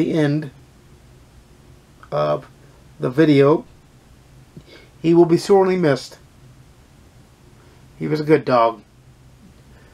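A man talks calmly and close, in short bursts with pauses.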